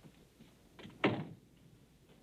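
A door shuts with a thud.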